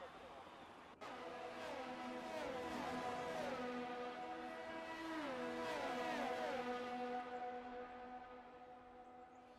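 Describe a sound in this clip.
Racing car engines scream past at high speed, their pitch dropping as each one goes by.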